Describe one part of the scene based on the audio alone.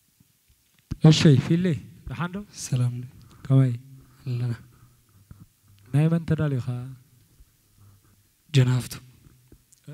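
A young man speaks through a microphone outdoors.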